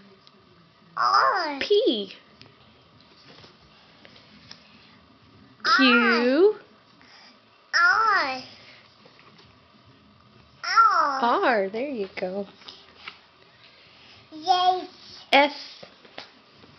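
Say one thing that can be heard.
A toddler girl babbles and squeals in short bursts close by.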